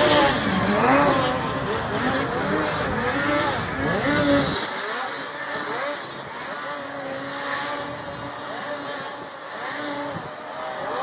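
A snowmobile engine roars and revs up and down close by.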